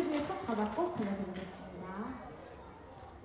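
A young woman speaks into a microphone through loudspeakers.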